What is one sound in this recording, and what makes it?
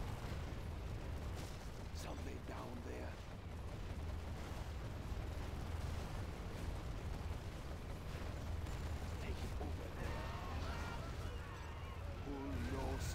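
Helicopter rotors thump steadily.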